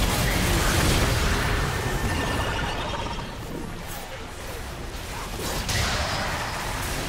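Game spell effects crackle and burst in a fast battle.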